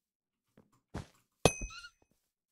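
A sword strikes with a sharp hit.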